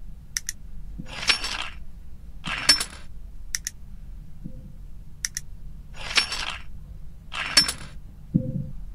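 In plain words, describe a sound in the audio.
Lock pieces slide into place with a soft whoosh.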